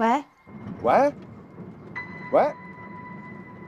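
A man speaks briefly into a phone, calling out in short bursts.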